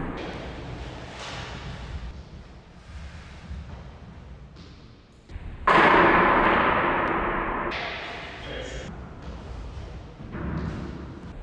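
Footsteps thud and shuffle on a wooden floor.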